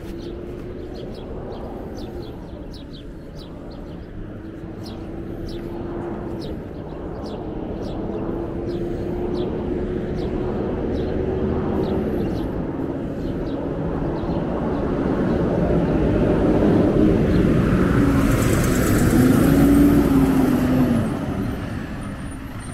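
Traffic hums steadily along a nearby street.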